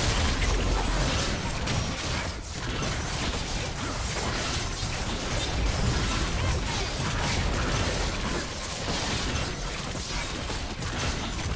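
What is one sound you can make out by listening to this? Spell effects and hits crackle and clash in a fast game battle.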